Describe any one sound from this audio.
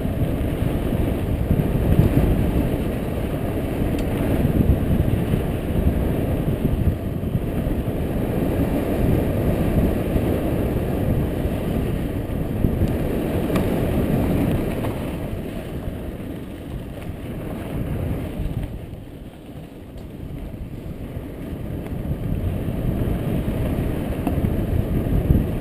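Bike tyres rattle and crunch over a dirt trail.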